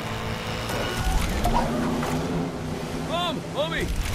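A speedboat roars and splashes through water.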